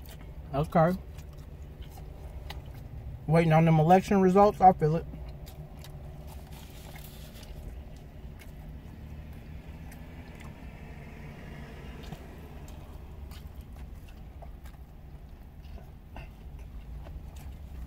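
A man chews food with his mouth full.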